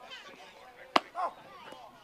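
A baseball smacks into a catcher's glove.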